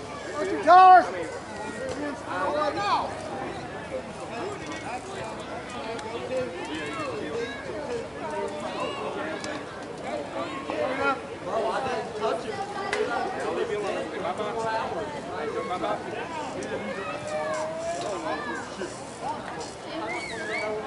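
Several men talk and call out across an open field outdoors.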